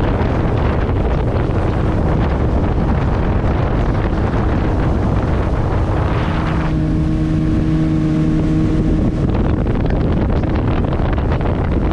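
Wind buffets loudly, as on a moving boat.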